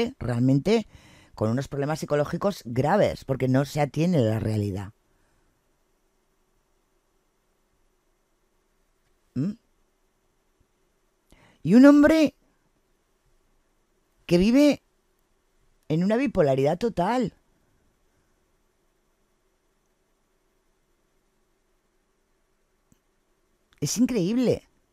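A woman talks with animation into a close microphone, with pauses.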